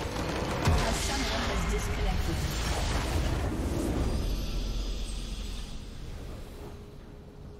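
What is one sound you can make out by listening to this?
A huge magical explosion booms and rumbles, then slowly fades.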